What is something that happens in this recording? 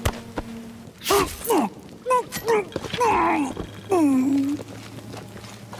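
A woman grunts and strains as she struggles.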